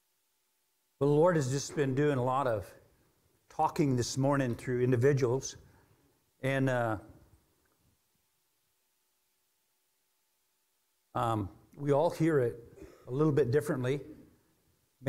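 A middle-aged man speaks calmly into a microphone, pausing often.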